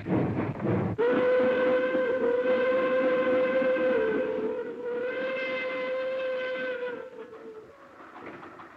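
A steam train whistle blows long and loud.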